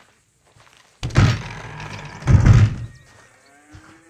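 Heavy wooden doors swing open with a loud creak and bang.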